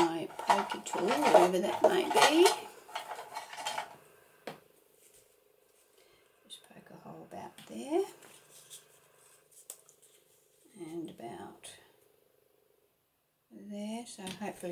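Paper rustles softly as hands press and smooth it.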